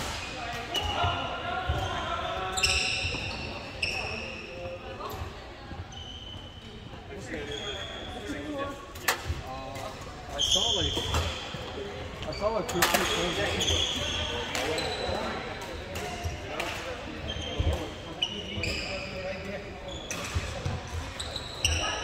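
Men call out and talk across the hall.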